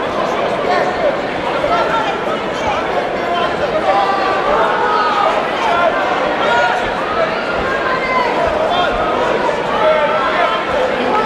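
A crowd of spectators chatters and shouts loudly in a large echoing hall.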